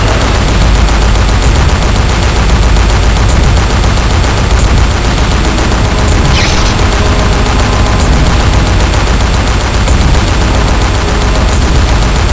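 Twin machine guns fire in rapid, continuous bursts.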